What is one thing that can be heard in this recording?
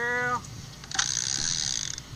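A fishing reel whirs as a line is reeled in.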